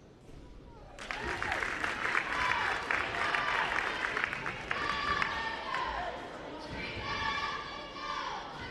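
A crowd in a large echoing gym cheers and shouts loudly.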